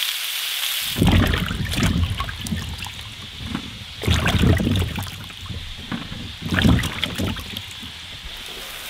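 Water splashes and drips as hands wash tomatoes.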